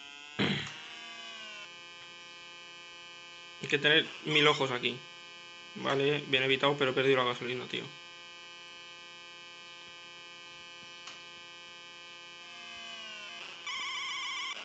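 A retro video game car engine buzzes steadily.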